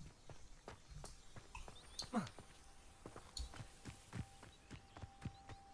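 Running footsteps thud quickly and evenly on stone and grass.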